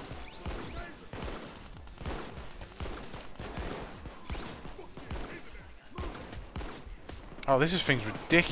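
Gunshots fire in quick bursts nearby.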